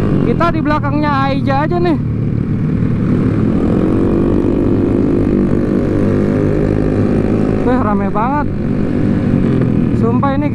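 Motorcycle engines rumble and drone steadily close by.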